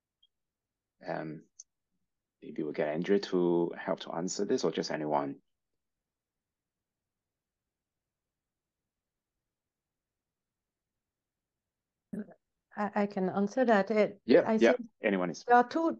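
A woman speaks calmly over an online call, in pauses.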